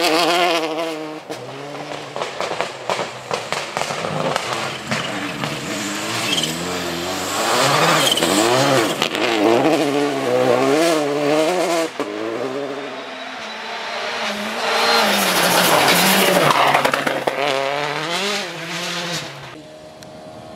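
A rally car engine revs hard and roars past.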